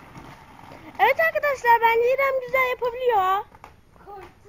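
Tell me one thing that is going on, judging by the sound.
A young girl calls out in a high, drawn-out voice close by.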